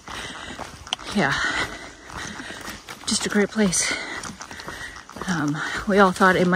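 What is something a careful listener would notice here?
Footsteps tread on a dirt forest trail.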